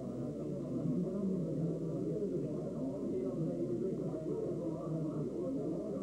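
Elderly men talk to each other up close.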